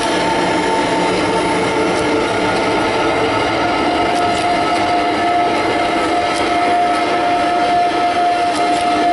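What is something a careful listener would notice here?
Music with long held tones plays loudly through a loudspeaker.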